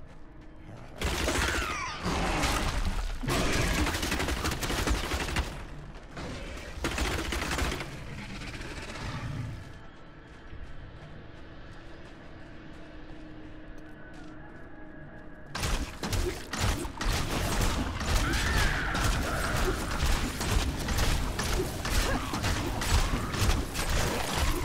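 Fiery magic blasts roar and crackle in bursts.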